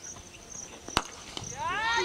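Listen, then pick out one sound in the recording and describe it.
A cricket bat strikes a ball with a single sharp crack.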